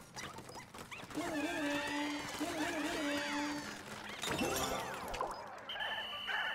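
Small creatures chirp and squeak in high voices.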